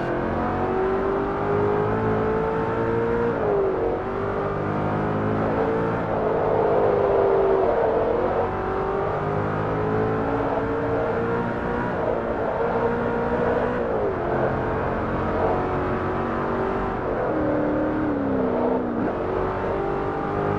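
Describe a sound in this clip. A supercharged V8 sports car engine in a racing game accelerates hard, its pitch climbing and dropping at each gear shift.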